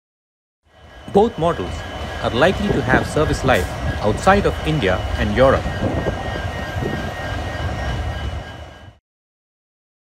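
A diesel locomotive engine rumbles nearby.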